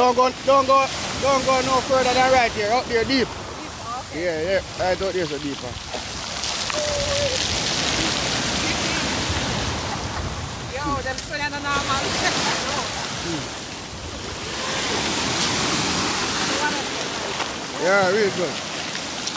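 Waves break and wash noisily over the shore.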